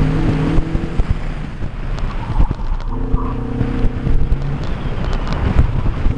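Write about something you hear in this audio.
Wind buffets loudly against the car.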